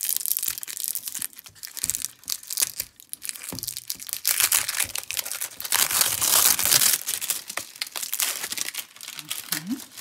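Plastic film rustles and crinkles as hands handle a roll.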